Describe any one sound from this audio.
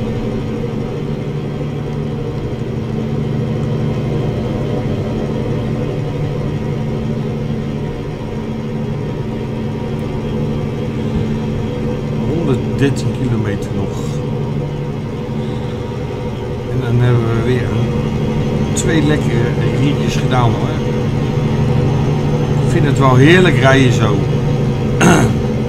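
A truck engine hums steadily at speed.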